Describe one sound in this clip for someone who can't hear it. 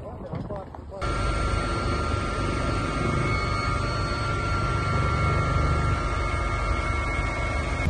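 A helicopter's turbine whines steadily.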